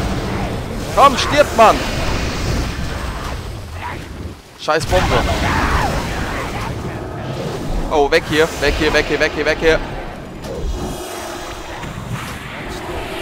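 Fantasy battle sound effects clash and boom during a fight.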